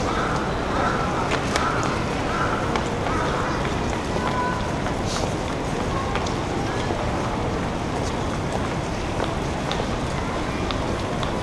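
Outdoors, a busy street hums with a steady low rumble of noise.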